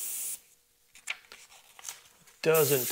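A sheet of paper rustles as it is lifted.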